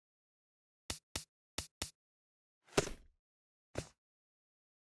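Short menu clicks tick as options change.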